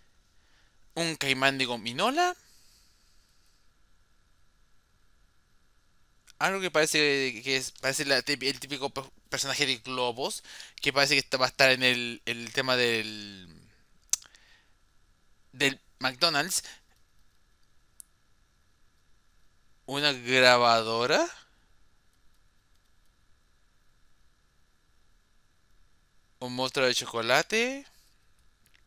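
A young man talks with animation into a headset microphone, in short bursts.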